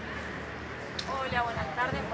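A man speaks loudly close by, heard over the crowd.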